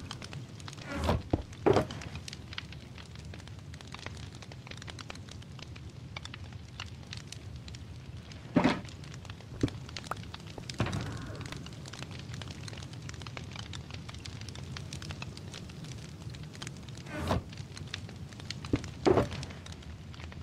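A chest creaks open and thuds shut several times.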